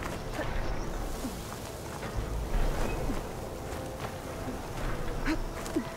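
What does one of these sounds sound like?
Footsteps scrape and crunch on rocky ground.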